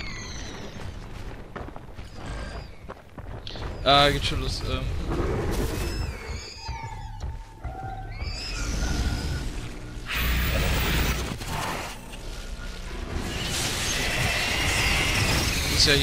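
A large beast snarls and roars.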